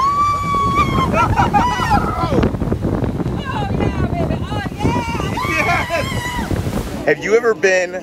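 A crowd of people chatters and shouts outdoors.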